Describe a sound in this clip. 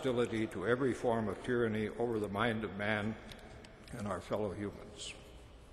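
An elderly man speaks slowly through a microphone in a large echoing hall.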